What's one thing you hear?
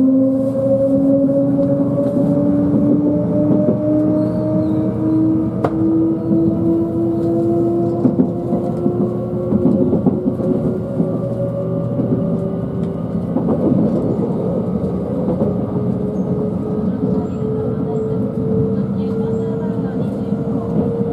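A train hums steadily with a slowly rising electric motor whine.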